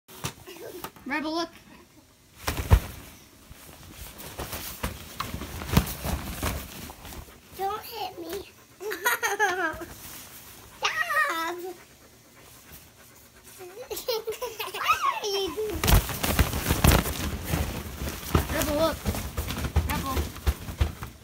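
A toddler girl squeals and babbles excitedly nearby.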